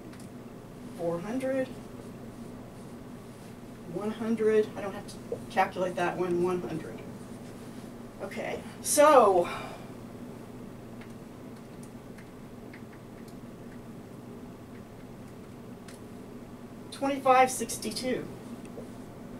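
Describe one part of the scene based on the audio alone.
A middle-aged woman speaks calmly in short bursts, close by.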